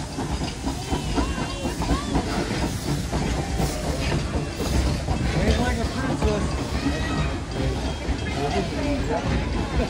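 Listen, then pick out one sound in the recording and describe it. A steam engine puffs out steam.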